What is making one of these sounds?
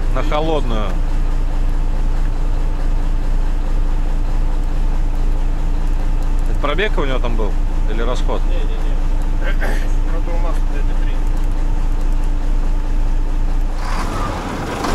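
A truck engine idles with a steady low hum.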